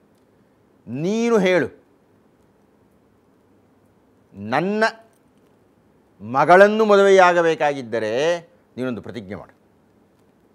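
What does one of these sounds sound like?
An elderly man speaks with animation into a close microphone, in short phrases with pauses.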